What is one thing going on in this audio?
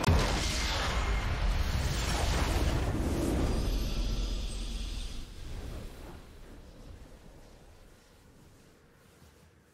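A swelling victory fanfare plays and slowly fades away.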